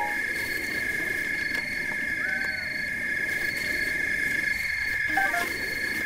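Footsteps pad through grass.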